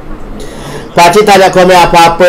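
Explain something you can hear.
A middle-aged man speaks loudly and with animation close to a microphone.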